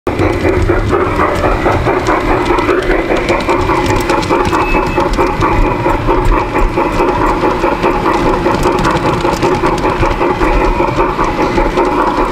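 Model train wheels click and clatter over rail joints.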